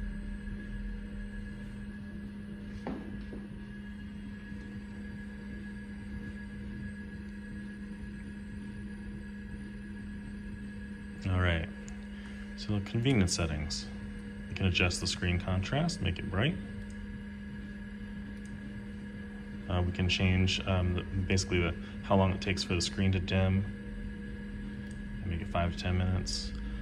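An old computer hums steadily.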